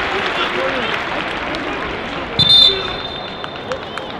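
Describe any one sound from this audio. A man shouts instructions from the sideline.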